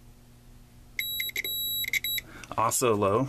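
A small electronic probe beeps in short, rapid bursts.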